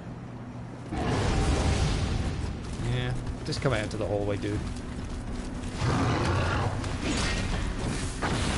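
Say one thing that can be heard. Heavy blows and clashing sounds of a fight ring out.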